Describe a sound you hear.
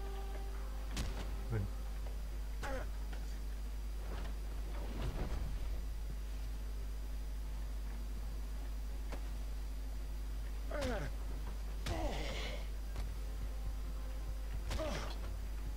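Punches and thuds land hard in a brawl.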